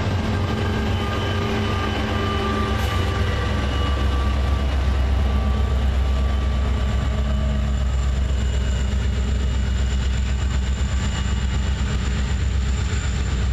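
Diesel-electric pusher locomotives rumble past under power.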